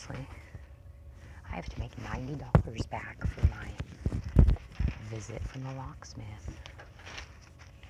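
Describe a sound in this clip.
Artificial flowers rustle and crinkle as a hand handles them.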